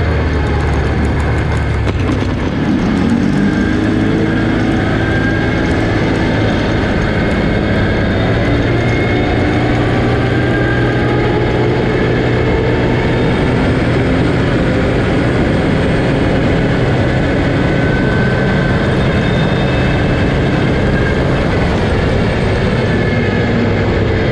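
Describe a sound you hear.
Tyres rumble and crunch on a gravel road.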